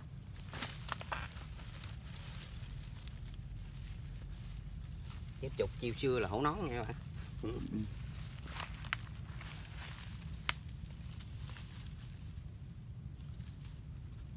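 Leaves rustle and stems snap as plants are pulled by hand.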